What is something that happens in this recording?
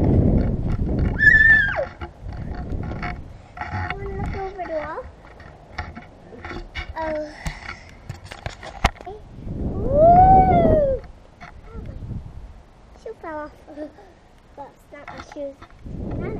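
A young girl squeals and laughs close by.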